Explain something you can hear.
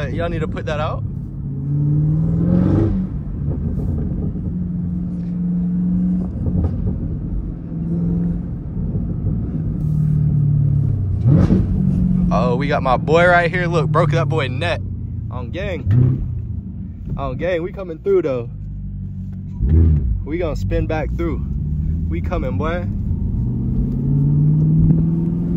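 A car engine rumbles deeply, revving up and down.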